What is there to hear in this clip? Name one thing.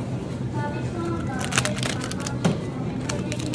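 A juice carton drops into a plastic basket with a thud.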